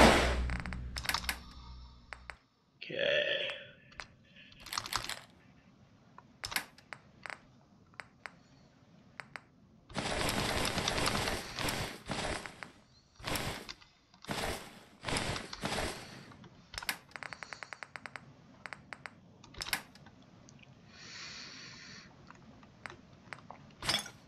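Short menu clicks tick again and again as a selection moves through a list.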